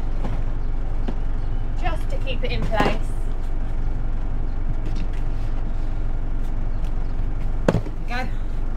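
A plastic bucket knocks against a hard floor.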